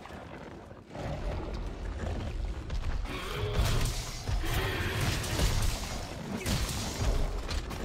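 A huge beast growls and roars close by.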